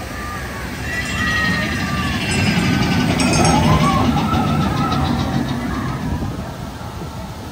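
A ride train rumbles and clatters along a track.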